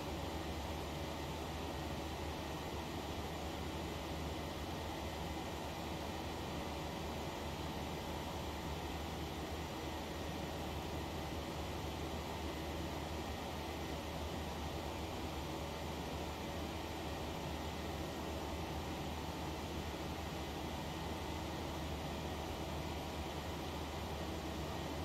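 Jet engines hum and roar steadily in flight.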